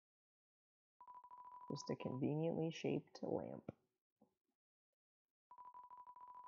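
A video game's dialogue text blips rapidly.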